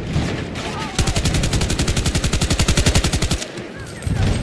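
A rapid burst of automatic gunfire rattles.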